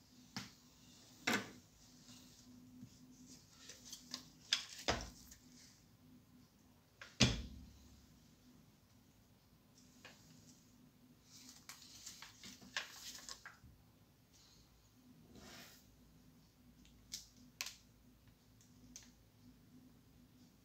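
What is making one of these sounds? Hands knock and rub against a plastic toy rifle now and then.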